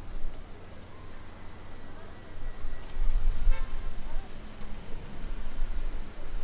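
Traffic hums softly in a city street outdoors.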